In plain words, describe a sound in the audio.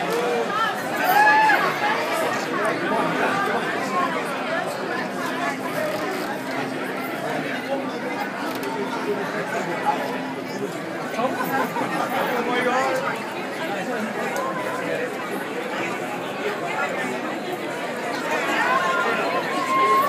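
Women in the crowd scream and cheer with excitement.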